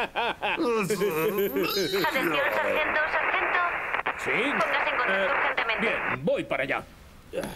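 A man grumbles and mutters angrily.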